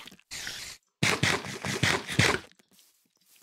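Loud munching of food.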